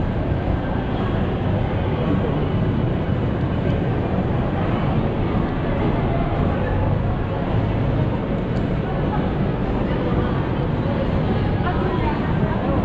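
A crowd of people murmurs indistinctly in a large echoing hall.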